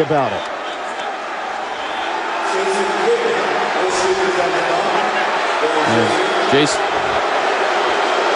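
A large indoor crowd roars and murmurs steadily.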